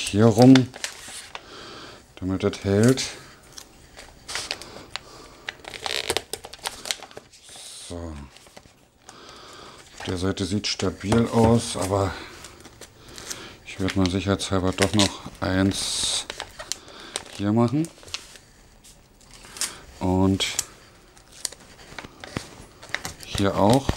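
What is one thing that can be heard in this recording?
Wrapping paper crinkles and rustles as it is folded.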